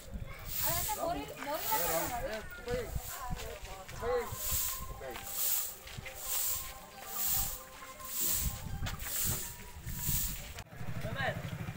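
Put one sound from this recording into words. A broom sweeps with rhythmic scratchy strokes.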